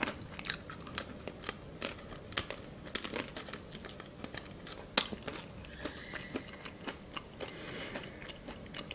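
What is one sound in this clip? A young woman crunches crispy food with her mouth close to the microphone.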